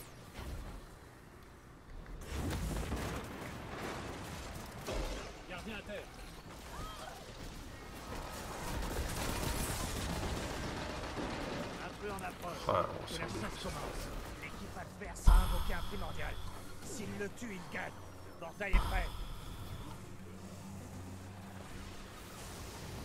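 A young man talks with animation into a headset microphone, close by.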